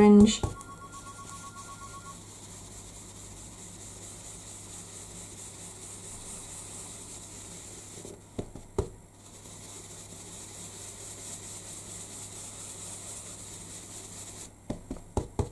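A foam dauber rubs and dabs softly on paper.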